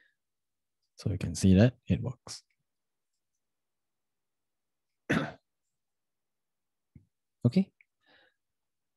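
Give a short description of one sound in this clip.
A young man speaks calmly and close to a microphone, in short bursts with pauses.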